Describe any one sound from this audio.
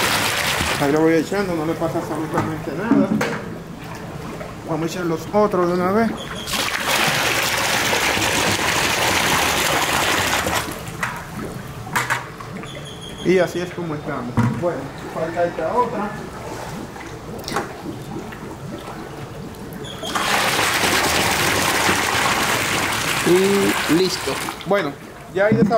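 Water pours from a bucket and splashes loudly into a pond.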